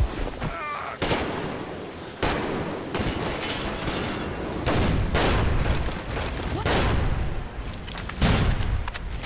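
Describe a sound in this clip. A rifle fires in sharp bursts.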